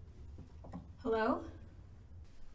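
A woman speaks briefly up close.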